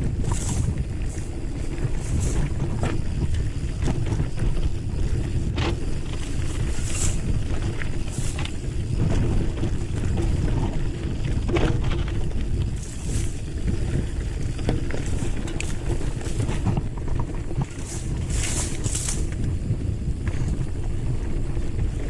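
A mountain bike rattles and clicks over rocks and bumps.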